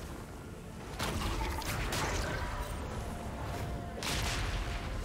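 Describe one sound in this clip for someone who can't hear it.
Fantasy game spell effects whoosh and crackle in short bursts.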